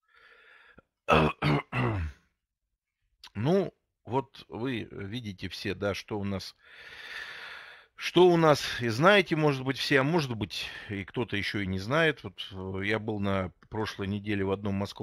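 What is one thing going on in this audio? A middle-aged man speaks calmly through a microphone on an online call.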